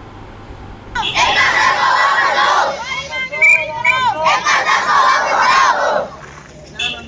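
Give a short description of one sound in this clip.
A large crowd of children chants loudly together outdoors.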